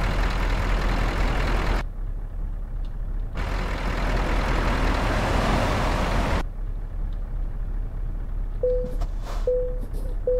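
A truck engine rumbles steadily, louder at times and muffled at others.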